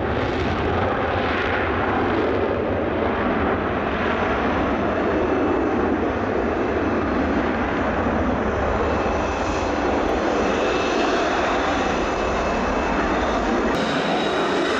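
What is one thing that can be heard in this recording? A jet engine roars loudly at full power.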